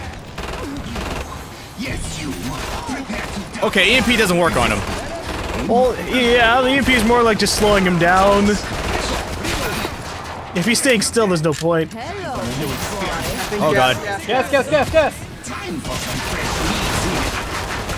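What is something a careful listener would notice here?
A heavy gun fires in bursts.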